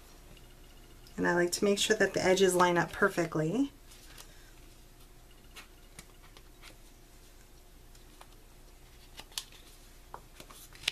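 Stiff card rustles and taps softly as it is bent and folded.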